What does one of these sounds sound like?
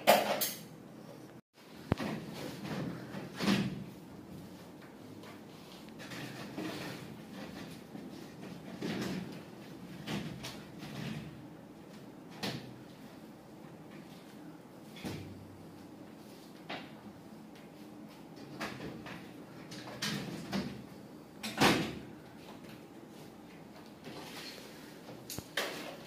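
Plastic ceiling panels knock and clatter as they are pushed into place.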